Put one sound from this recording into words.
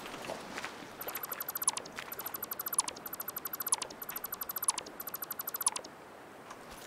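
A tool in a game gives off rapid, repeated mechanical clicks in short runs.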